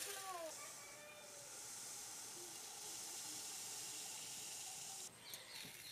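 Sugar pours and hisses from a metal bowl.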